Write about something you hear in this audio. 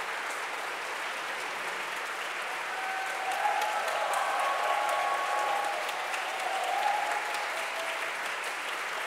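A small ensemble of singers and instruments holds a final chord in a large echoing hall.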